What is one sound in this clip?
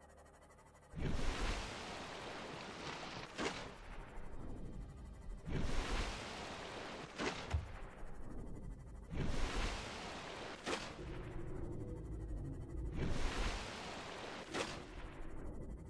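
Water splashes and rushes loudly as a small submarine breaks the surface again and again.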